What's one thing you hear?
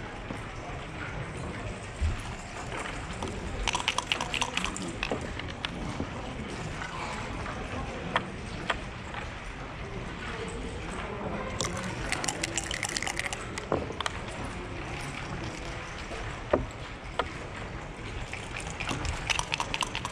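Backgammon checkers click as they are moved on a wooden board.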